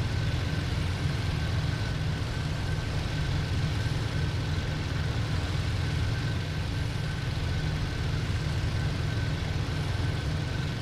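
Wind rushes past an aircraft canopy.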